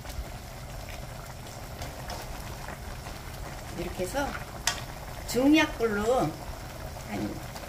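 A wooden spoon stirs vegetables in a pan.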